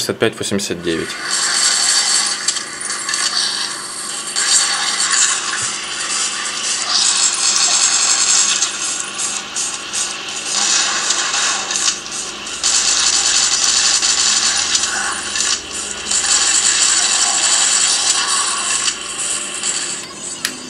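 Gunfire and action sounds from a phone game play through a small speaker.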